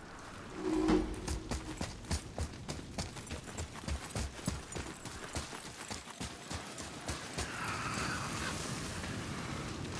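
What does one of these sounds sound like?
Heavy footsteps crunch on dirt and stone.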